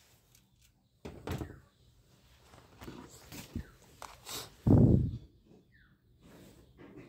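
Hard plastic knocks and rubs as a toy pistol is picked up and turned over.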